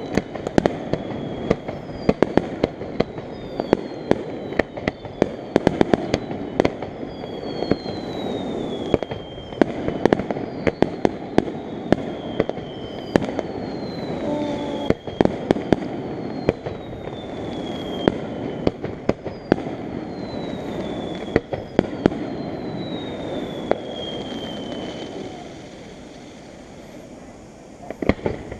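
Fireworks bang and pop in quick succession some distance away.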